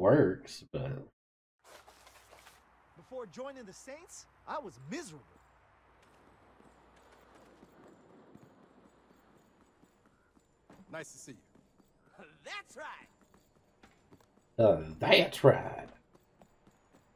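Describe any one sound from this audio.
A middle-aged man talks into a close microphone with animation.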